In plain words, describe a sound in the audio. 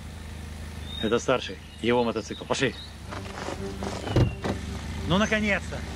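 An older man speaks tensely up close.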